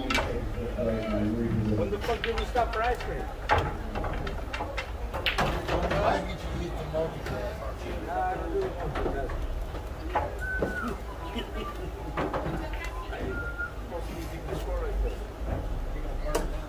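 Pool balls clack sharply against each other.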